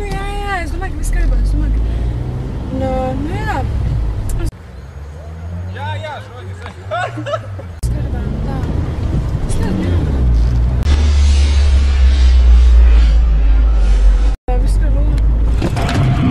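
A young woman talks on a phone in a car.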